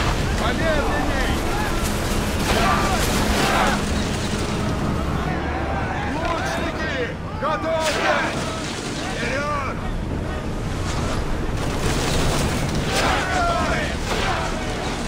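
Waves crash and splash against a ship's hull.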